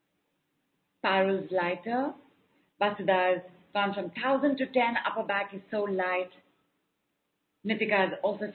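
A woman speaks calmly and warmly into a microphone.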